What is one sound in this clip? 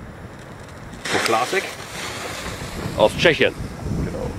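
A firework fuse hisses and sputters.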